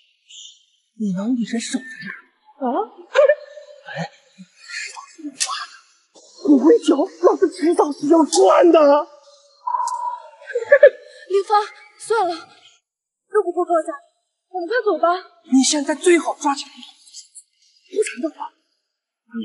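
A young man speaks menacingly, shouting at times.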